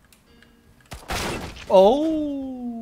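Gunshots crack loudly in quick succession.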